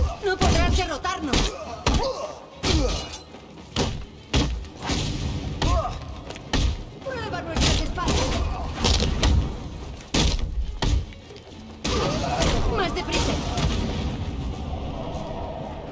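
Men grunt and cry out as blows hit them.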